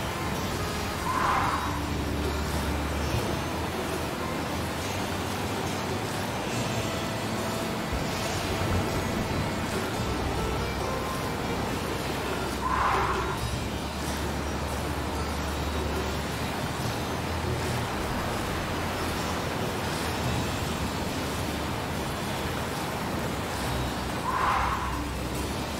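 A hover bike jumps and lands with a short whoosh.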